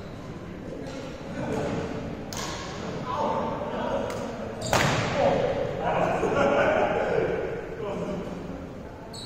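Young men talk and call out across a large echoing hall.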